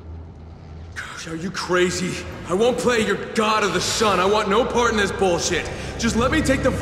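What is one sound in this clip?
A man speaks with agitation.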